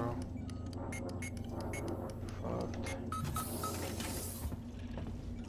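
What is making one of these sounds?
Keypad buttons beep as a code is entered.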